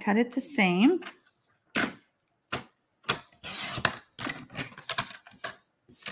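A paper trimmer blade slides and cuts through card.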